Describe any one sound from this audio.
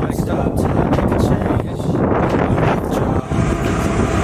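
A young man speaks with animation close to the microphone, outdoors in wind.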